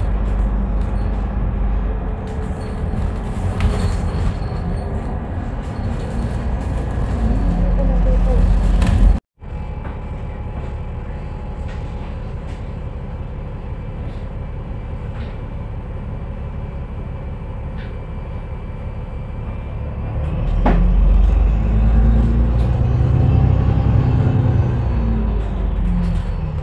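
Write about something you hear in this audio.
A vehicle's engine rumbles steadily from inside the vehicle.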